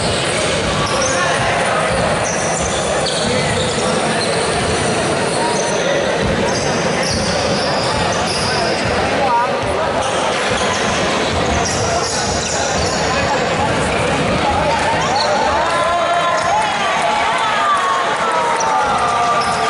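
Sneakers squeak on a wooden court in an echoing hall.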